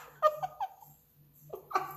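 A middle-aged woman laughs close by.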